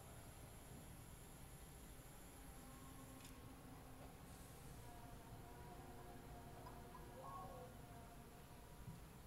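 Electronic tones with steady pitches play briefly.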